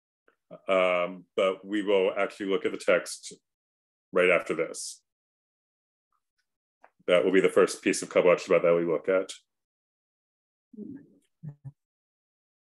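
A young man speaks calmly over an online call.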